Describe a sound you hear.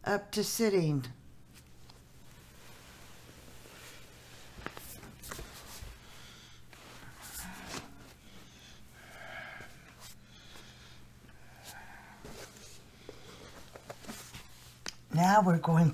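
An older woman shifts and rolls over on the floor with soft rustling.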